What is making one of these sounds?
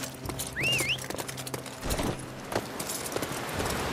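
Footsteps patter as a man runs.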